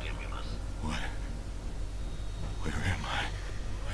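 A man groans.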